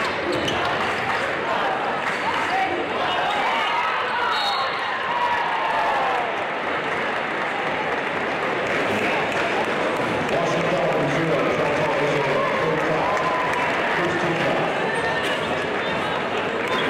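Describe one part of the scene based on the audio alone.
Basketball shoes squeak sharply on a hardwood court.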